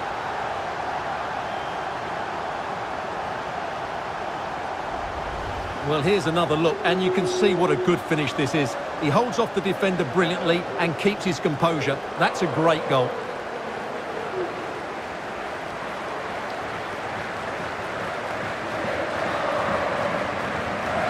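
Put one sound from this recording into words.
A crowd cheers and roars steadily in a large stadium, swelling near the end.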